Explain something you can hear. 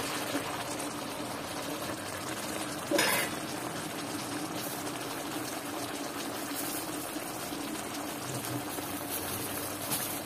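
Pork sizzles and crackles in a hot pan.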